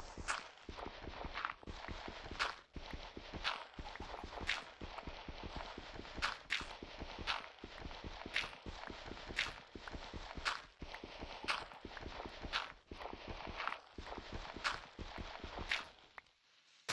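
A stone block breaks apart with a short crunch, over and over.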